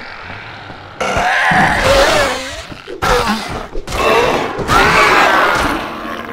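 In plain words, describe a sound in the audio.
Heavy blows thud wetly into flesh.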